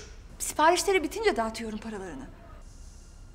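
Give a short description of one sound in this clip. A woman speaks nearby in a pleading tone.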